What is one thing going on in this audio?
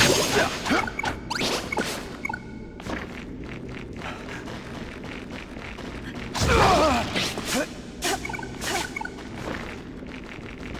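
Swords swish and clang in a fast fight.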